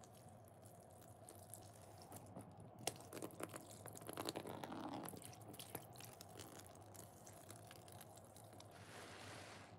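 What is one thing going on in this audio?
A thin stream of liquid pours and trickles onto a wet sponge.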